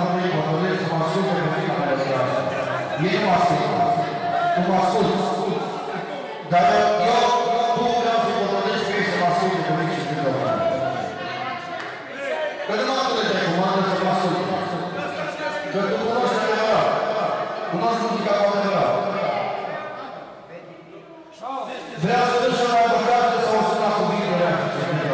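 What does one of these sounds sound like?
A group of men sing loudly together in an echoing hall.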